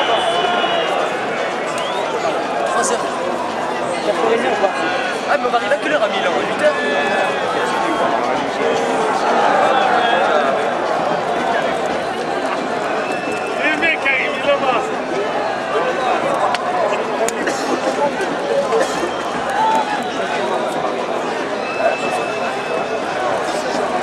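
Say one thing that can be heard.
A large stadium crowd chants and cheers loudly, echoing around the stands.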